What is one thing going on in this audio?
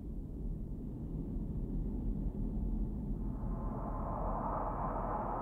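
Sparks crackle and fizz close by.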